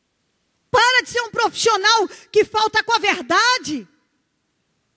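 A woman speaks with animation into a microphone, heard through a loudspeaker.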